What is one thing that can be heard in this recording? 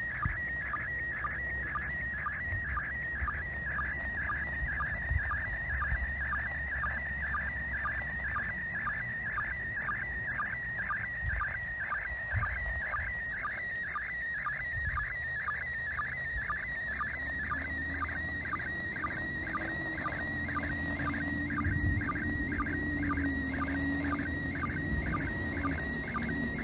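A handheld radio gives off a rapid, steadily repeating warbling tone.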